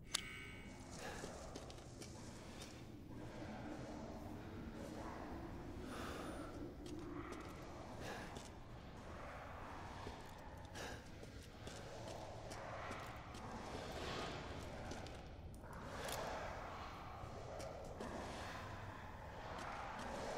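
Footsteps tread slowly on stone.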